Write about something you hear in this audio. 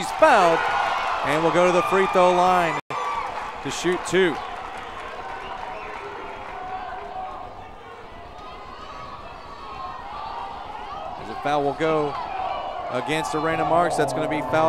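Young women shout and cheer loudly in a large echoing hall.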